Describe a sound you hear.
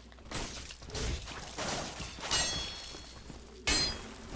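A sword clashes against metal.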